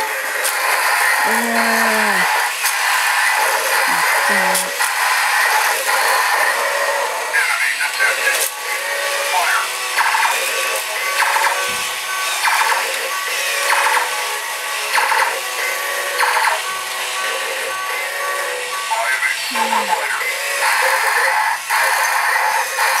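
A toy robot plays busy electronic sound effects.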